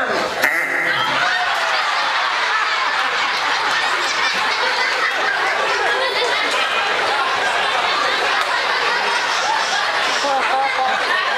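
An audience murmurs and laughs.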